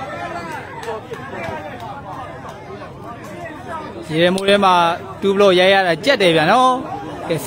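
A crowd of men and women chatters outdoors.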